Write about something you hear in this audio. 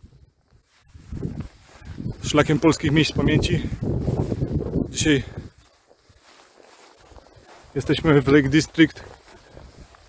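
A man talks calmly close up.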